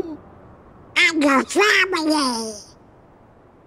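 A boy replies gently.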